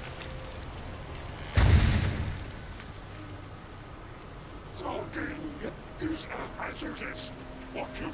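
Footsteps crunch quickly over the forest floor.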